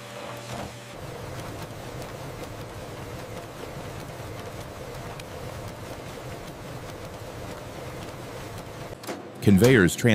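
Paper notes rustle along a moving conveyor belt.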